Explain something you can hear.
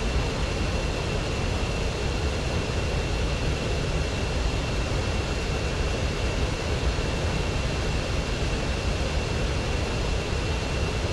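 A jet engine rumbles steadily.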